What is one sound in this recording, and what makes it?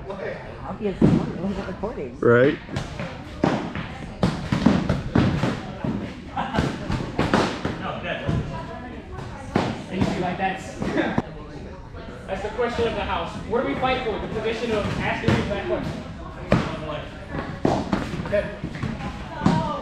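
Feet shuffle and stamp on a hard floor.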